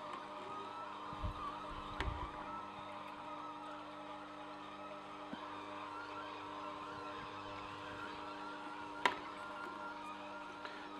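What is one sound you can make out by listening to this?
A juicer motor hums steadily.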